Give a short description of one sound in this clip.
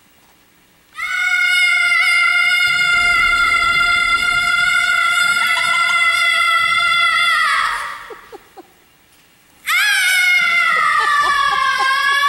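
A young woman sings long, high, held notes in a large echoing hall.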